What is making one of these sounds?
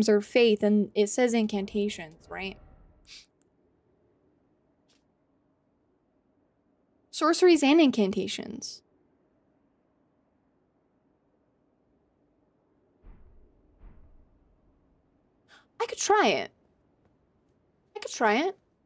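A young woman talks animatedly into a nearby microphone, in short bursts.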